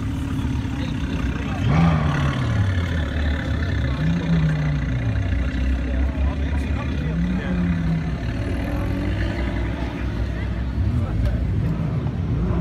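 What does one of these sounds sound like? A car rolls slowly past.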